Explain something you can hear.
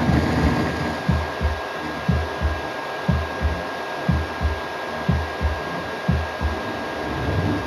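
Rapid thuds of blows come from a television loudspeaker.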